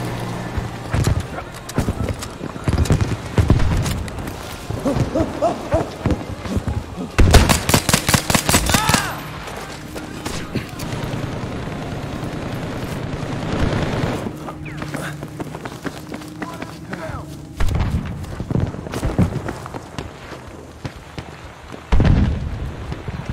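Gunshots crack sharply, several times.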